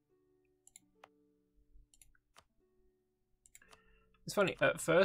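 Soft interface clicks and chimes sound.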